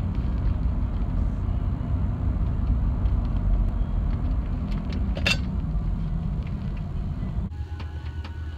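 A car engine and tyres rumble steadily while driving.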